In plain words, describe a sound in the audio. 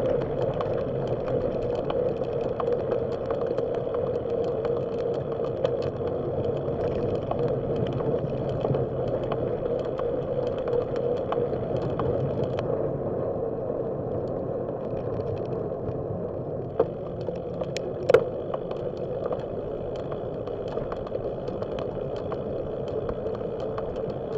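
Bicycle tyres roll steadily over a paved path.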